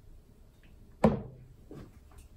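A mug is set down hard on a counter with a knock.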